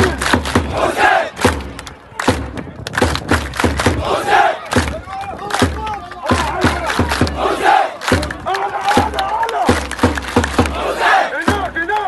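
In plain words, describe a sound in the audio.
A large crowd claps in rhythm.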